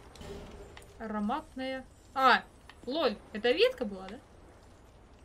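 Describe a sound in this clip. A young woman speaks with animation into a microphone.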